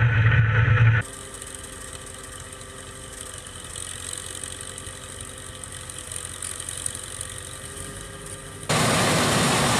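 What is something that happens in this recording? A tractor engine idles with a steady hum.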